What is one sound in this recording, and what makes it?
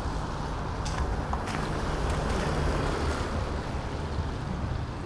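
Traffic hisses past on a wet street outdoors.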